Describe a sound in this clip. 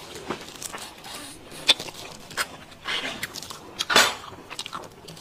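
A young woman chews and slurps food close to a microphone, with wet smacking sounds.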